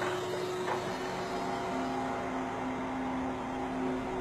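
A hydraulic arm whines as it moves.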